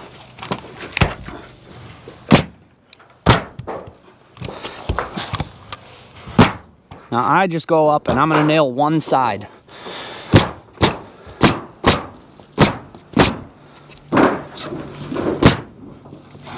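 A staple hammer snaps sharply against a roof, over and over.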